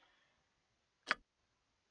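A soft click sounds as a menu button is pressed.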